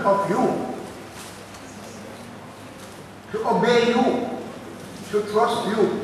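An elderly man speaks slowly and solemnly through a microphone in an echoing hall.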